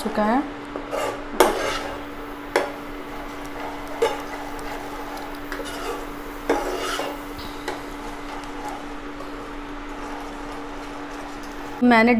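A spoon scrapes and clinks against a frying pan.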